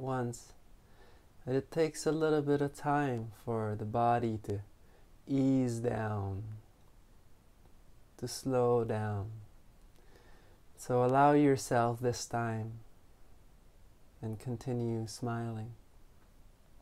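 A man speaks calmly and slowly, close by, with pauses.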